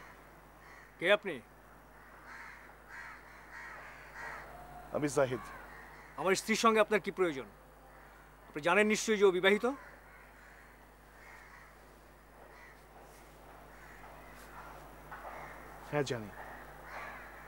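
A man speaks nearby in short, emphatic bursts.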